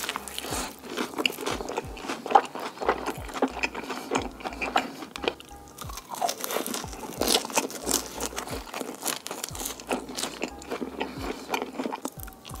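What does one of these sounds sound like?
A man chews crunchy fried food loudly and close to a microphone.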